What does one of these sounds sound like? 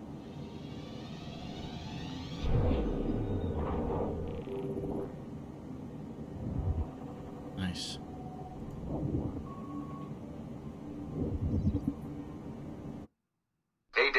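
Deep electronic whooshes and rumbles swell and fade.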